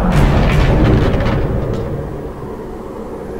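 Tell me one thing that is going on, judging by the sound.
A loud magical blast bursts out and then fades to a low rumble.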